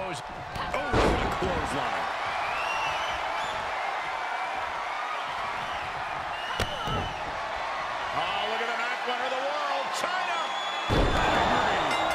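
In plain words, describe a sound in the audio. A wrestler's body slams onto the ring mat with a heavy thud.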